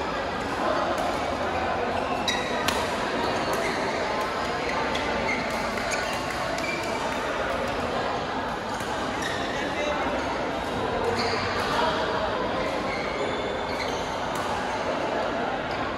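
A crowd of players chatters in a large echoing hall.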